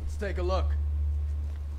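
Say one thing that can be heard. A man speaks briefly into a microphone, close by.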